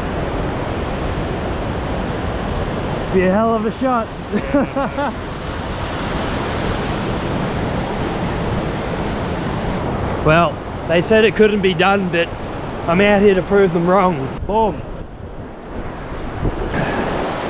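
Whitewater rushes and roars over rocks close by.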